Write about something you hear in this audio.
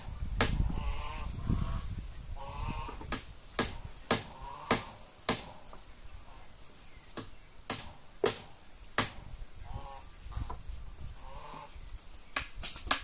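A man knocks a stick sharply against wood.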